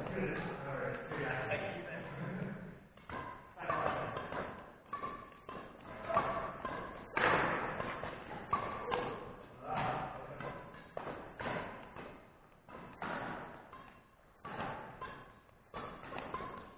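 Badminton rackets strike a shuttlecock again and again in a large echoing hall.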